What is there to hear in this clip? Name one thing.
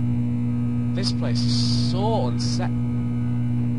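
A young man speaks briefly and calmly into a microphone.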